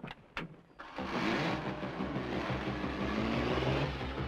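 A car engine rumbles as the car drives off.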